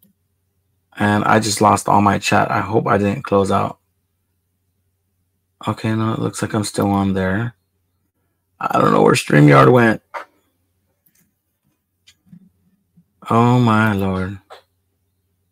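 A man talks calmly into a close microphone in short bursts.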